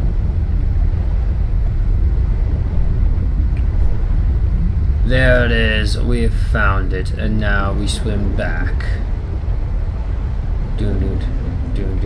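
A low, steady underwater rumble fills the space.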